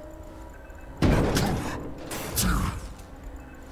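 A heavy metal crate creaks and bangs open.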